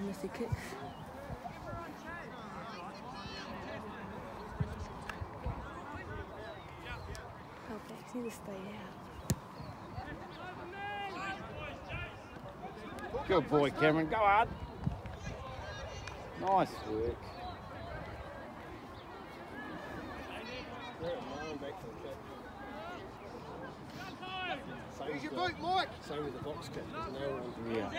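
Young players shout and call out to each other across an open field outdoors.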